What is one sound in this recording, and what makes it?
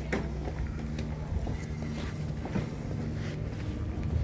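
Footsteps tap on stone paving nearby.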